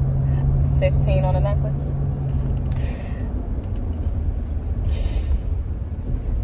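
A car engine rumbles low and steadily.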